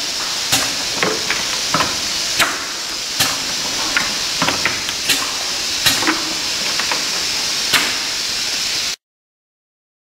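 A capping machine hums and hisses steadily.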